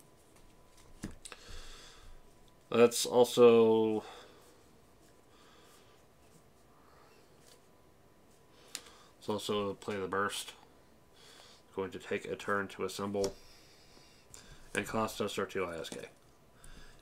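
Playing cards slide and tap softly on a table.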